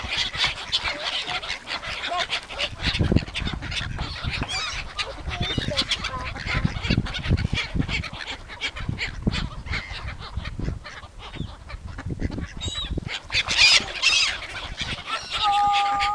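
Gulls squawk and cry nearby.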